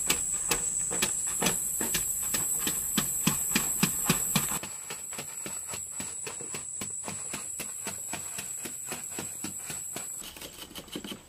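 A hoe chops rhythmically into packed earth.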